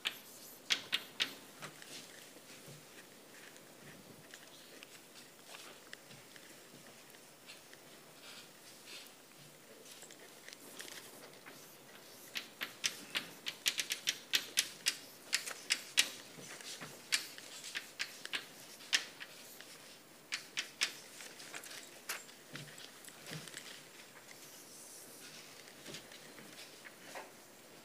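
Chalk taps and scrapes on a blackboard in quick bursts.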